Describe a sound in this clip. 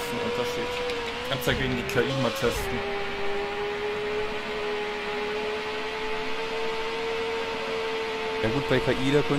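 A racing car engine drones steadily at high speed, its pitch dipping briefly as it shifts gears.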